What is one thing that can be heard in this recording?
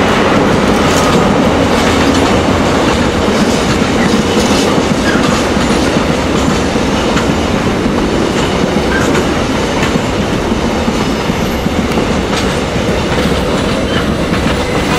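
A long freight train rumbles steadily past, close by.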